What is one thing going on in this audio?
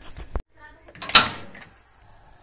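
A stove knob clicks.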